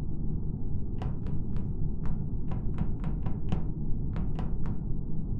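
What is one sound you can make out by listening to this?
Quick footsteps patter across a hard floor.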